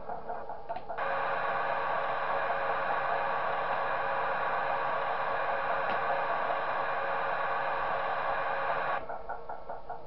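A locomotive engine rumbles steadily as it rolls by.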